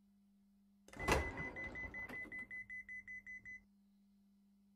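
A door alarm beeps rapidly.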